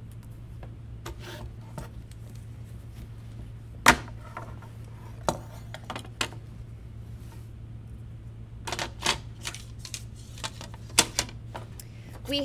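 Small clicks and taps sound on a table.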